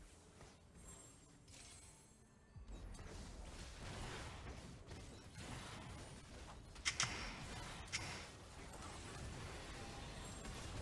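Game characters clash in battle with magic blasts and hits.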